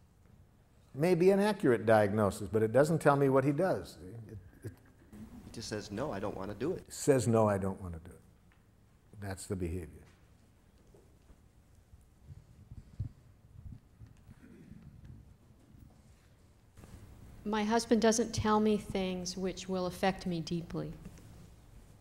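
An elderly man speaks calmly and close to a clip-on microphone, in short bursts with pauses.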